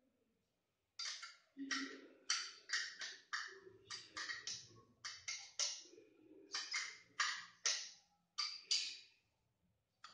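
Small metal parts click and clink together.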